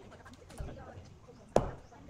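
A hammer strikes a large block of wood with a sharp knock.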